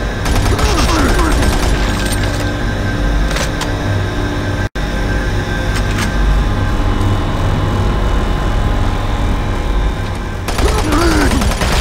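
A monster growls and snarls.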